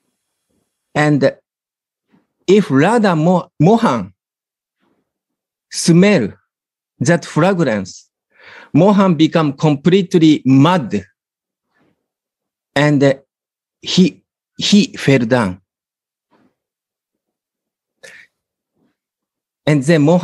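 A middle-aged man speaks calmly in pauses over an online call.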